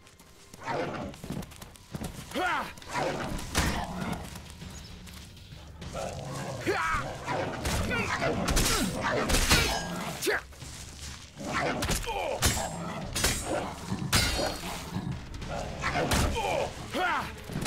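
A beast snarls and yelps.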